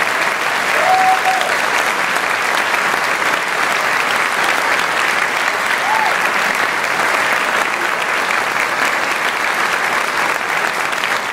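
A large male choir sings in an echoing hall.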